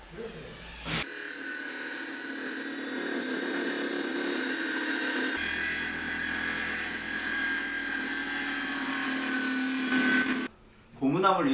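A circular saw whines loudly, cutting through wood.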